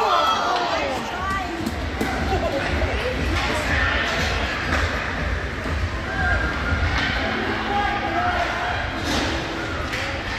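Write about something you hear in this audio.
Skates scrape and hiss across ice in a large echoing rink.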